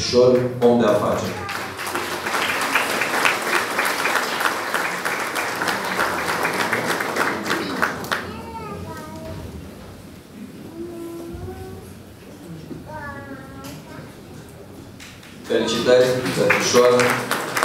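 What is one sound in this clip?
A man speaks through a microphone over loudspeakers in a hall.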